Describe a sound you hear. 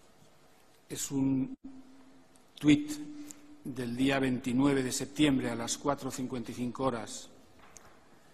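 A middle-aged man speaks into a microphone with animation.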